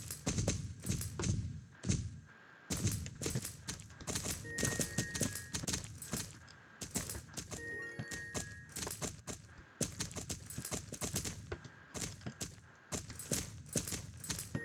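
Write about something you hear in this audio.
Horses gallop with quick, rhythmic hoofbeats.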